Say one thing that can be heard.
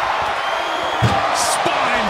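A body slams hard onto a wooden box.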